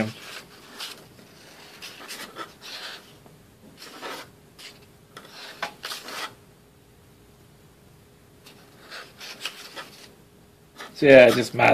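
Paper pages rustle softly as they are leafed through.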